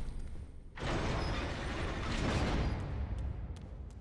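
A heavy iron gate rattles and grinds open.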